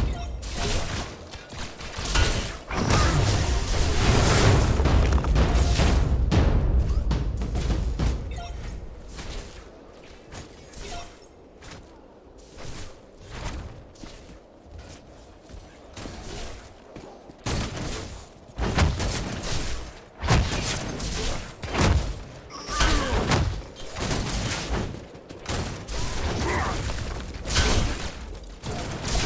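Weapons fire and energy blasts burst in quick succession.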